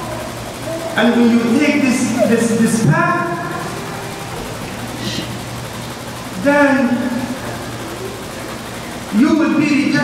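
A man speaks calmly through a microphone, in bursts with pauses, in an echoing hall.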